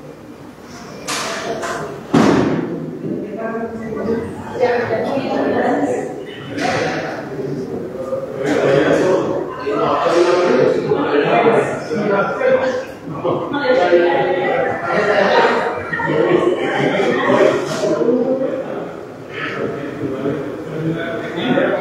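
A woman talks close by with animation.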